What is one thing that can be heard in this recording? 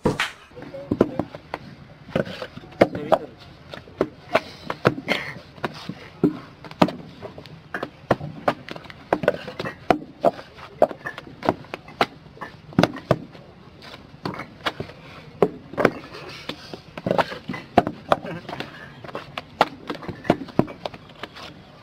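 Men tap and knock bricks into place on the ground, with a sharp repeated clatter.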